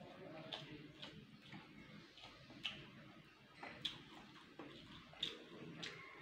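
A man eats with his hands, chewing and smacking close by.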